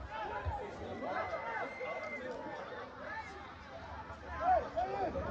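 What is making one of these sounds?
Young men shout and call out across an open outdoor field.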